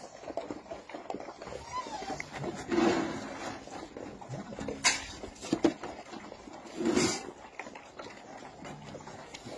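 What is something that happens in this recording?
Dogs chew and lap food noisily.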